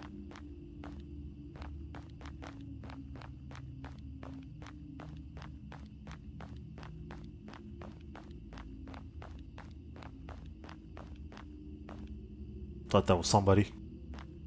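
Footsteps tread steadily on stone paving.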